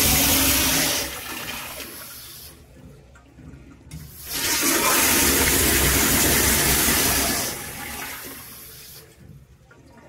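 Water swirls and gurgles in a toilet bowl as it refills.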